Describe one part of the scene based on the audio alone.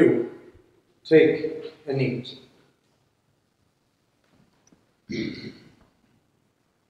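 An older man speaks slowly and solemnly, with pauses, in a room with a slight echo.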